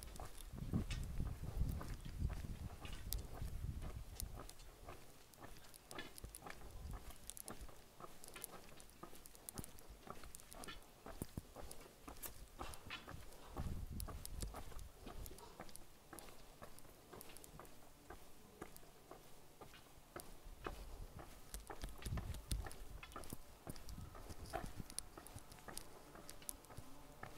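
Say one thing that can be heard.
Footsteps scuff slowly along a stone-paved lane outdoors.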